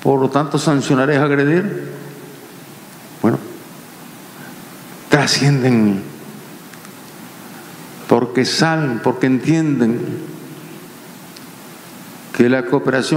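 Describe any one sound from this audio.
An elderly man speaks slowly and forcefully into a microphone, in bursts with long pauses.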